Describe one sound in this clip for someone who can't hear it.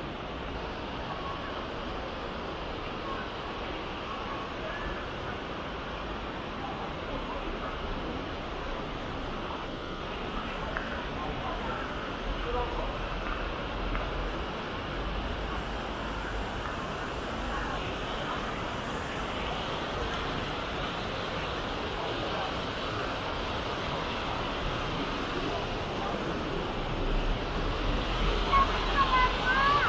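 A waterfall splashes and rushes steadily, growing louder near the end.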